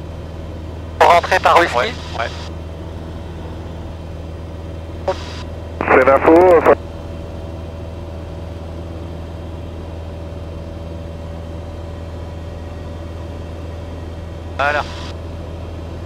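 A man speaks calmly over a headset intercom.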